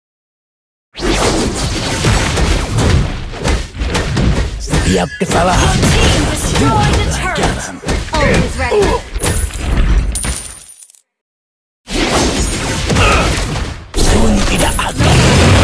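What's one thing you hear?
Magical blasts and whooshes burst during a fight.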